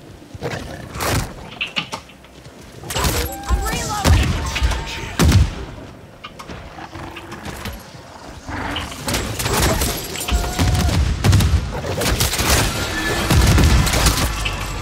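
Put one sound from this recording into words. Gunfire and explosions from a video game boom repeatedly.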